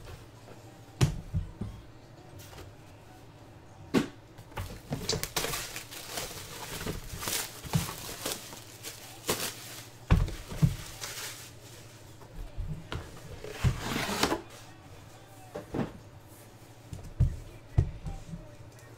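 A cardboard box knocks and thuds as it is handled.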